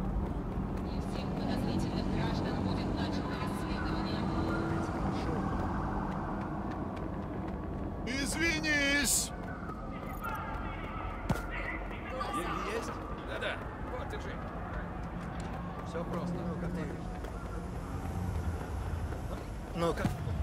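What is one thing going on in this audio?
Footsteps tap on pavement as a man walks.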